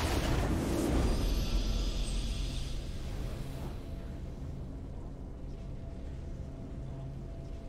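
A triumphant game fanfare plays softly.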